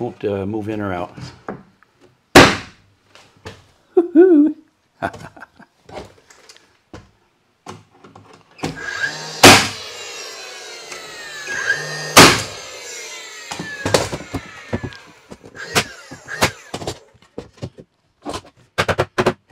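Wooden boards knock and clatter against a wall.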